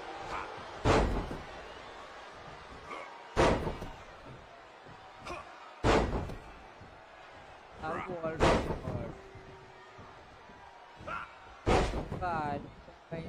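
Heavy bodies slam down hard onto a wrestling mat again and again.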